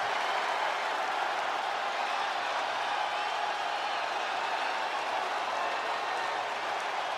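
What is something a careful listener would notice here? A large crowd cheers and roars steadily in a big echoing arena.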